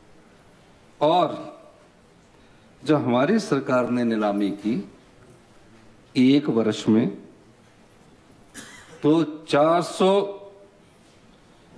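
A man speaks into a microphone in a formal, measured voice, in short bursts with pauses.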